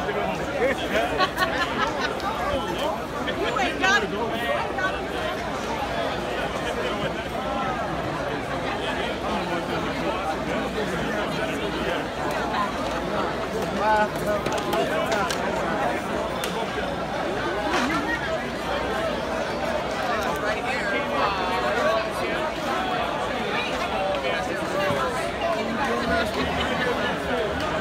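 A large crowd chatters and shouts all around, close by.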